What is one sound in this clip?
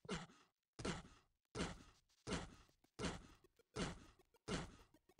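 A game character jumps again and again in a steady rhythm, with a short grunting sound each time.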